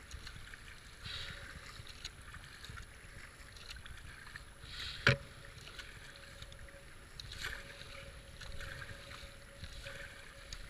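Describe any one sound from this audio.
A kayak paddle splashes rhythmically through the water.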